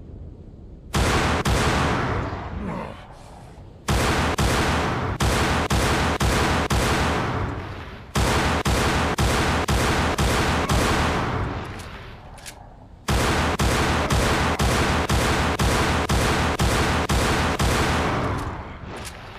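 Rapid pistol shots fire in quick bursts, echoing off stone walls.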